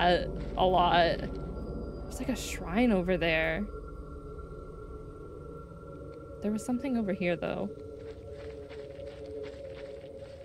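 Footsteps crunch softly on a leafy forest path.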